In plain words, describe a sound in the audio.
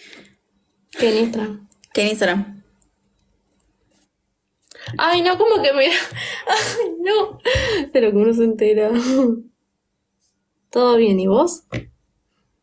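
A teenage girl talks and laughs close to a phone microphone.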